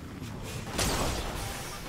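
A vehicle engine rumbles.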